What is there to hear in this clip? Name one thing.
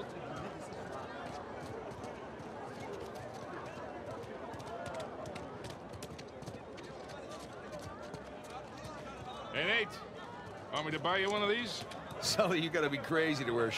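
Footsteps hurry over stone.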